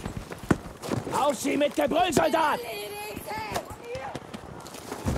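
A wounded soldier groans and cries out in pain.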